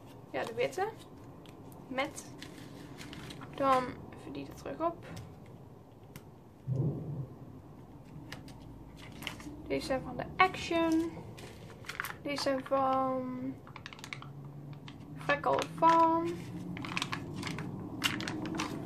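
Plastic sticker sheets crinkle and rustle as they are handled.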